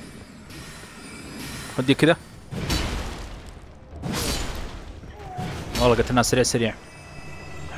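A sword swings with a whoosh and strikes.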